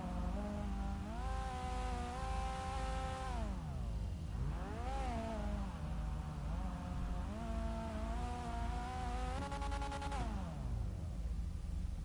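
A car engine revs up and down loudly.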